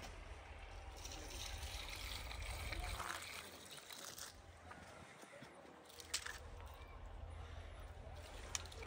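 Water pours from a metal jug onto plants and soil.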